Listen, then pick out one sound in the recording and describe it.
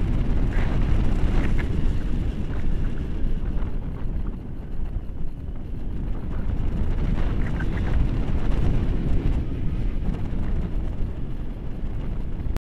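Strong wind rushes and buffets loudly against a microphone.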